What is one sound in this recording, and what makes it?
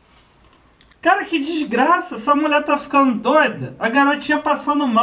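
A young man talks loudly with animation, close to a microphone.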